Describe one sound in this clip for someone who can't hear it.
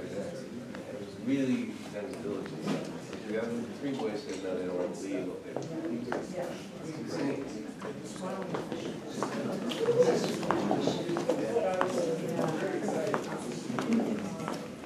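Several men and women talk at once in a room with some echo.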